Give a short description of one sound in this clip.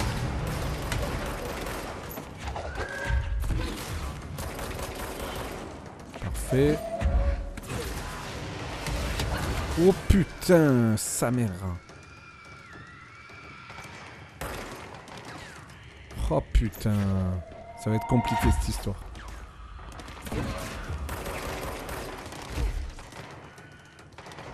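Gunshots and explosions boom and crackle in rapid bursts.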